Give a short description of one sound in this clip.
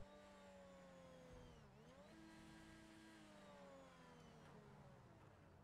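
A racing car engine revs high, dropping and rising in pitch as the gears shift.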